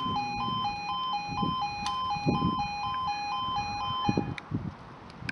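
A level crossing alarm sounds in a rapid, steady two-tone pulse and then stops.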